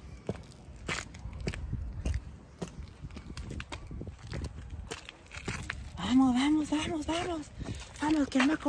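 Footsteps scuff on sandy ground.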